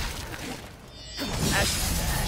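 A burst of energy blasts loudly.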